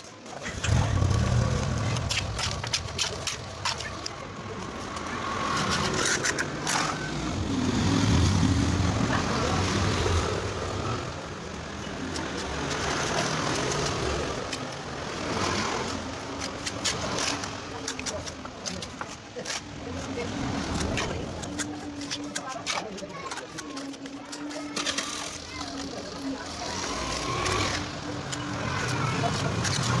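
A trowel scrapes and taps wet mortar.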